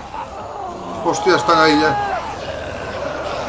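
A young man cries out in alarm.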